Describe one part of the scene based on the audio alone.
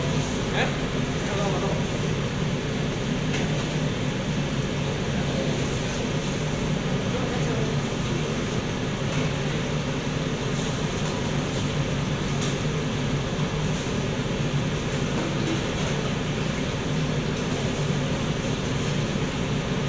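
A kitchen extractor hood fan hums steadily.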